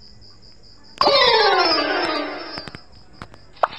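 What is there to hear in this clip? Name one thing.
A short descending game jingle plays.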